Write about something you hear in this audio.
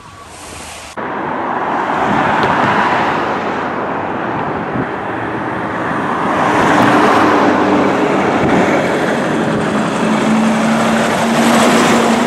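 A heavy truck engine roars, growing louder as it approaches.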